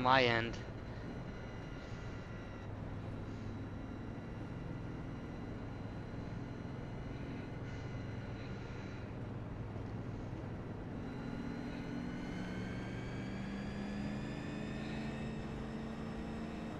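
A race car engine drones steadily, its pitch rising as it speeds up.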